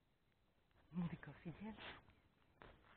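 A dog sniffs and snuffles in grass close by.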